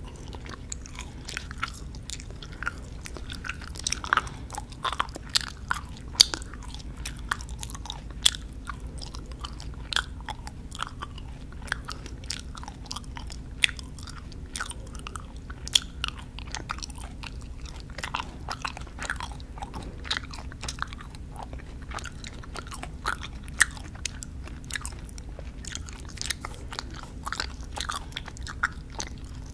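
Soft wet mouth clicks and smacks sound right up close to a microphone.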